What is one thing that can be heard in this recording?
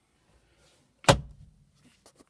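A plastic lid snaps shut with a sharp click.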